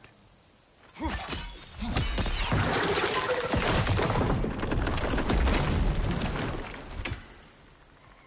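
A magical burst crackles and roars loudly.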